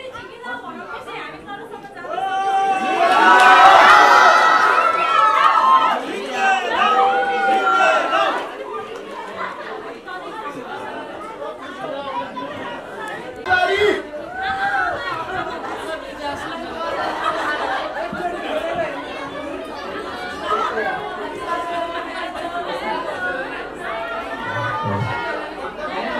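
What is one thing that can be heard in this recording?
A crowd of people chatter and call out excitedly.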